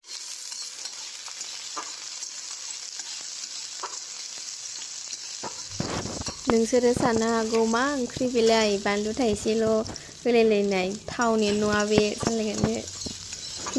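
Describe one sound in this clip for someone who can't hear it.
Onions sizzle in hot oil.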